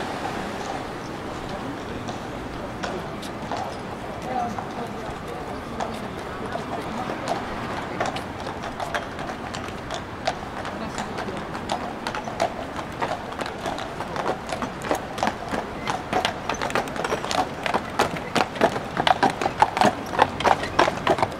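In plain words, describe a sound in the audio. Steady street noise hums outdoors.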